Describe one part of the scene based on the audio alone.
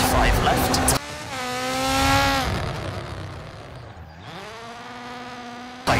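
A rally car races past and its engine fades away.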